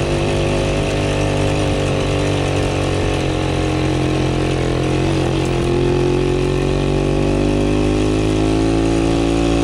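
A motorcycle engine hums steadily up close and shifts in pitch.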